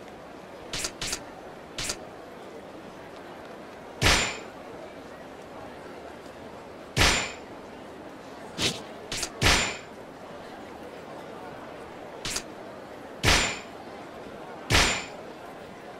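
Short electronic menu clicks sound as selections change.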